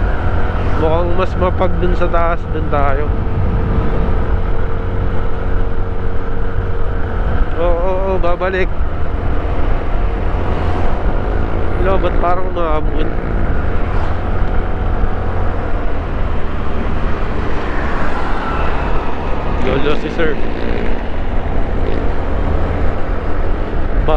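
Wind rumbles steadily against a moving scooter.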